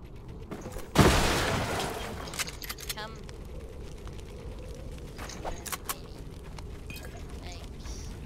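Shotgun blasts boom.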